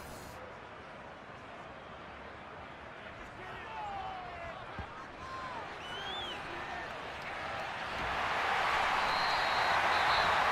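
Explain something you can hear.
A stadium crowd murmurs, then swells into a loud roar.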